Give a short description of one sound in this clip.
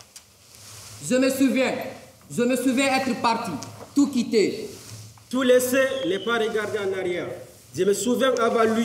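A young man speaks loudly and with animation in a large hall.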